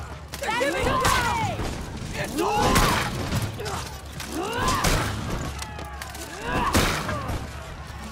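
A sword clangs against armour.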